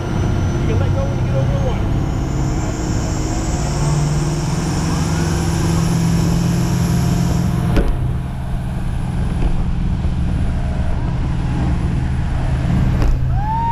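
A boat engine drones steadily.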